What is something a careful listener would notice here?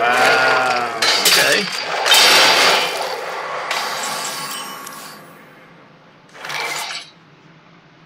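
Magical game effects whoosh and chime.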